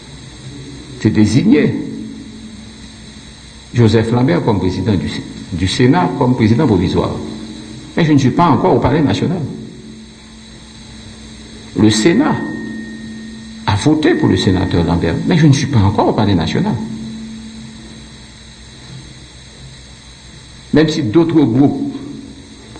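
A middle-aged man speaks forcefully into a microphone in bursts, with pauses between phrases, in a slightly echoing room.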